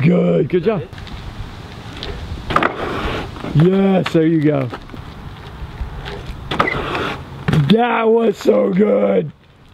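A bicycle lands on a wooden bench with a thud.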